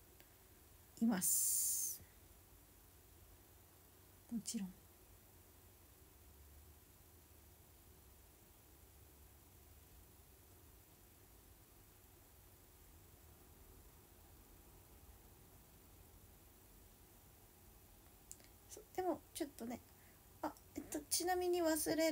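A young woman speaks softly and close to a microphone.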